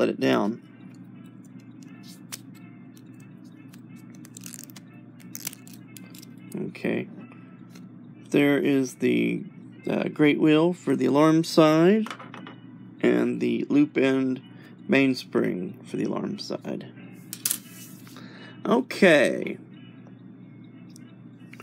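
Small metal clock parts click softly as they are handled.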